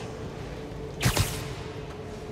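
A swinging figure whooshes sharply past.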